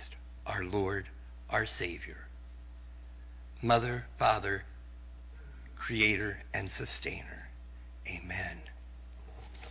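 A man speaks calmly through a microphone in a large echoing room, with pauses.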